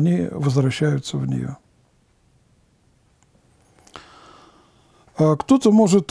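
An elderly man reads aloud calmly and close to a microphone.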